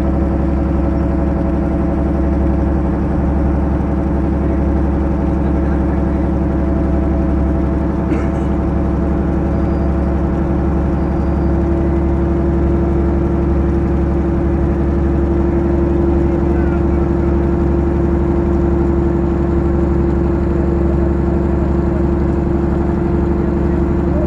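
Water rushes and splashes past a moving boat.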